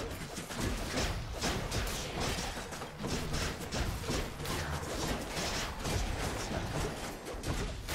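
Game combat sounds of rapid hits and magic blasts clash continuously.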